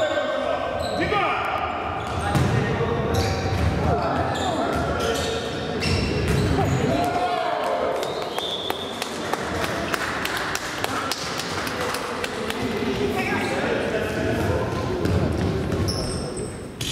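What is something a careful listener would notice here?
Children shout and call out in a large echoing hall.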